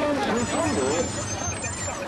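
A man speaks loudly through a microphone and loudspeaker.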